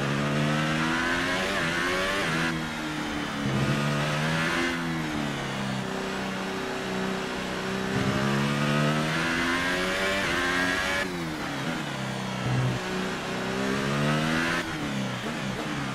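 A racing car engine screams at high revs, rising in pitch and dropping sharply with each gear change.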